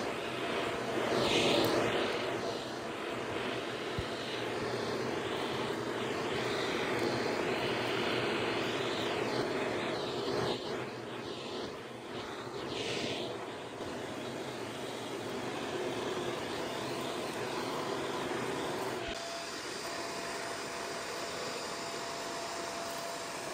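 A vacuum cleaner hums steadily and sucks up debris.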